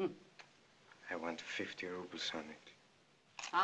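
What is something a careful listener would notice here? A man speaks softly and sadly.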